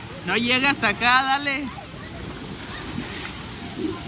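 Water splashes as a child slides into a pool.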